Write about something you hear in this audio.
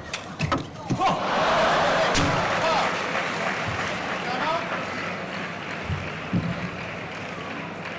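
A large crowd in an echoing hall cheers and applauds.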